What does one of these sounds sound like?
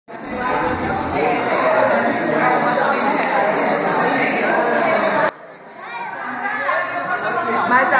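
A crowd of people chatter at once in a large echoing hall.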